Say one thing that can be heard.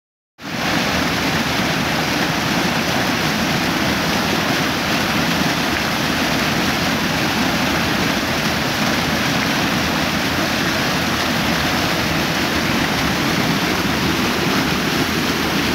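A waterfall roars steadily close by, crashing into a pool.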